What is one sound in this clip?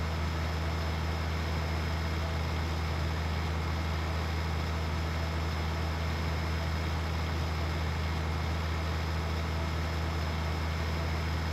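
A tractor engine hums steadily as it drives along.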